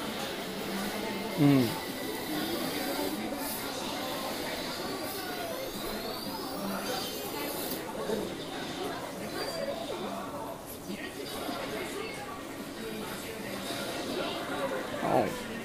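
Fighting game sounds and music play loudly through arcade loudspeakers.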